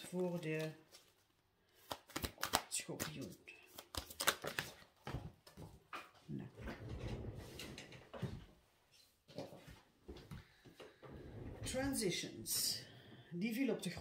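Cards rustle and tap as they are handled.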